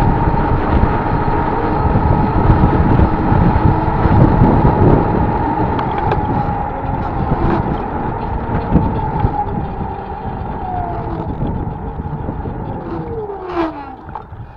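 A car drives along an asphalt road and slows down.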